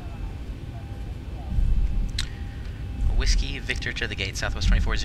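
A jet engine hums low and steady as an airliner taxis.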